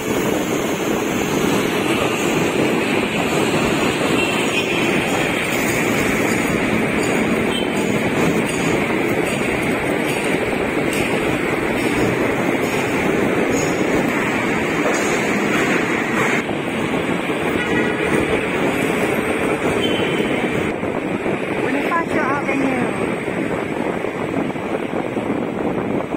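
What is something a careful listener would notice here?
Traffic rumbles steadily along a busy road.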